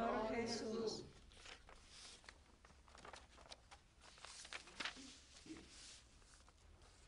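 Paper rustles and crackles nearby.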